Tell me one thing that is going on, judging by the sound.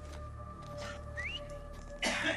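A man whistles a short signal.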